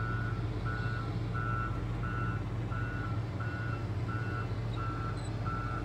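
A truck engine rumbles steadily up close.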